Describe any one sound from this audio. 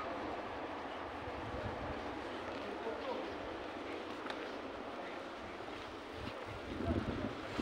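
Men talk in the distance outdoors.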